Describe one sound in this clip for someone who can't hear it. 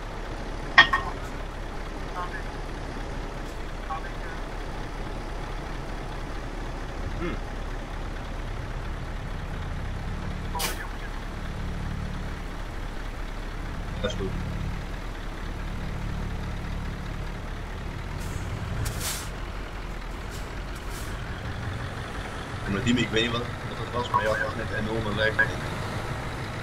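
A heavy truck engine idles with a low, steady rumble.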